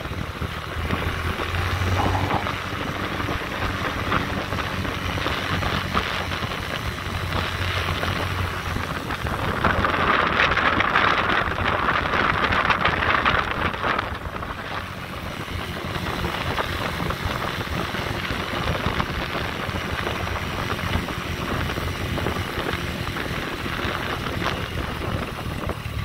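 Wind rushes past outdoors, gusting louder for a while.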